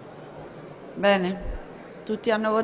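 A woman speaks over a loudspeaker.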